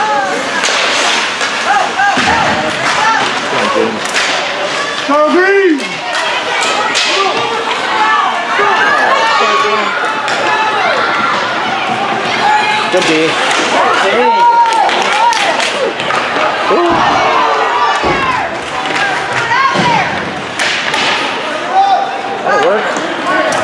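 Hockey sticks click against the puck.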